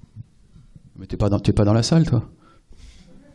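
A young man speaks briefly through a microphone.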